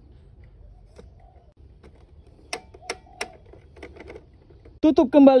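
Plastic parts click as a hand turns and fits a toy drum magazine.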